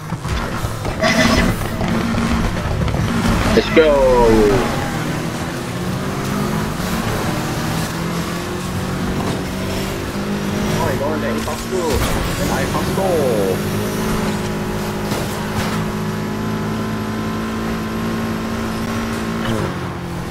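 A car engine revs hard and roars as the car speeds up.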